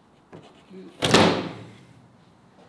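A large panel thumps down onto a car's roof frame.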